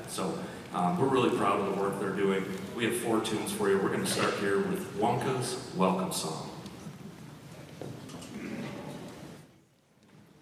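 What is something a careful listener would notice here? A man speaks calmly into a microphone, heard through loudspeakers in a large echoing hall.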